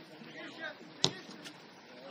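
A football is kicked with a dull thump.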